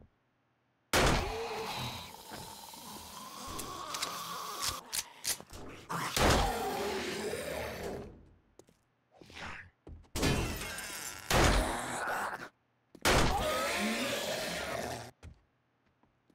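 A zombie growls and snarls loudly.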